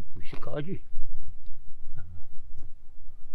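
An elderly man speaks briefly and calmly, close by.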